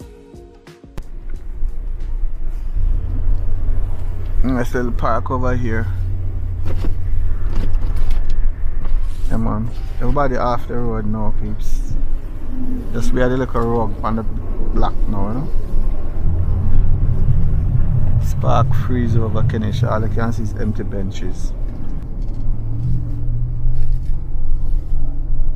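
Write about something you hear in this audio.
A car engine hums low and steady as the car drives along.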